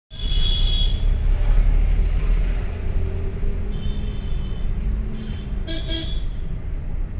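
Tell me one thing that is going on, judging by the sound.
Horns honk in busy traffic outside.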